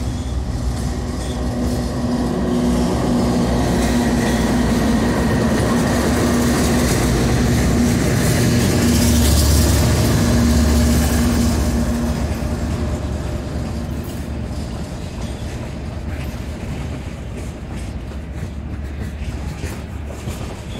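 Steel wheels clatter and squeal on the rails as a freight train rolls past.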